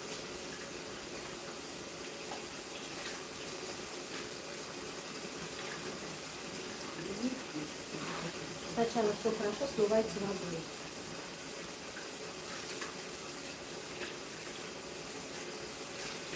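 Water from a shower head sprays and splashes steadily.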